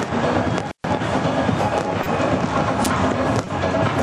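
A large crowd cheers loudly outdoors.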